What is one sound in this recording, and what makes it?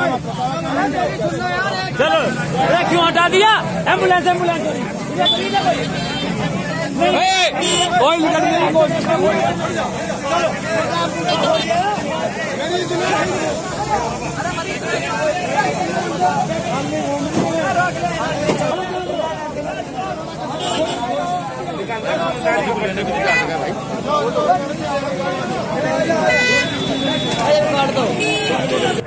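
Several men talk over one another loudly outdoors.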